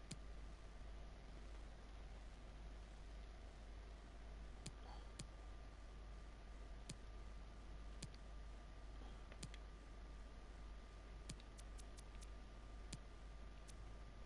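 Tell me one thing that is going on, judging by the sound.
Short electronic clicks sound now and then as menu options change.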